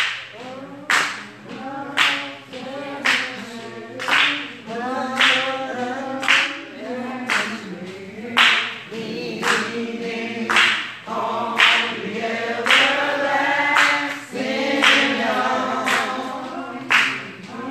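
A group of men and women sings together.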